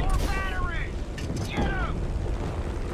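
Rockets whoosh through the air.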